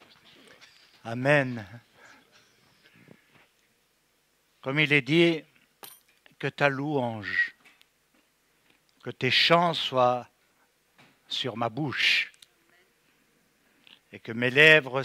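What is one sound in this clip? An older man sings a slow chant through a microphone.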